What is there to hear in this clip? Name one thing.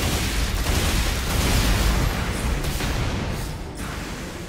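Rapid gunfire blasts loudly.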